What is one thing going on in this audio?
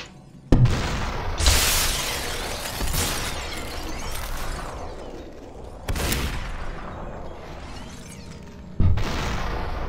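Gunshots fire with sharp, loud bangs.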